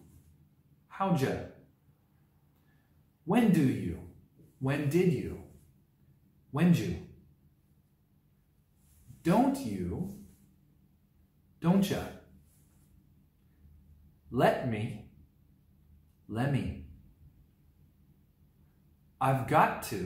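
A man speaks calmly and clearly into a close microphone, in short phrases with pauses between them.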